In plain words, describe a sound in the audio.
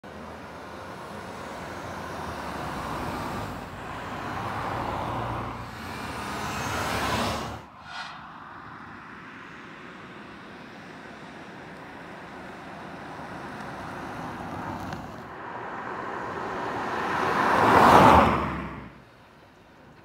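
A car drives past, its tyres and engine swelling and then fading quickly.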